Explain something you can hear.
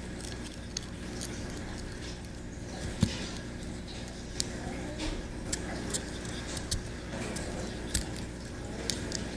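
Small metal parts click and tick as fingers handle them.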